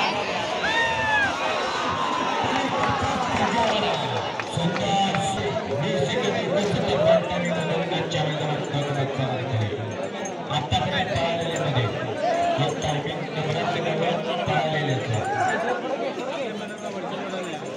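A large outdoor crowd of men shouts and cheers loudly.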